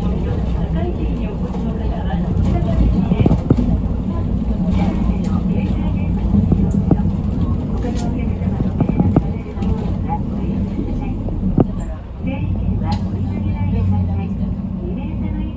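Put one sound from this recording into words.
Loose fittings inside the bus rattle and knock as it rides over the road.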